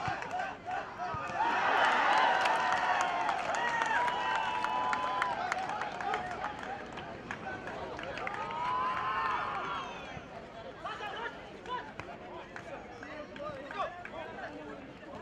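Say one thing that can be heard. A large crowd cheers and shouts outdoors, swelling loudly and then settling.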